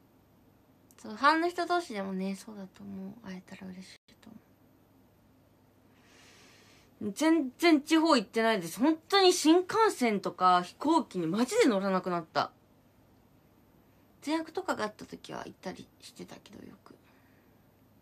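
A young woman talks with animation, close to a microphone, in short bursts with pauses.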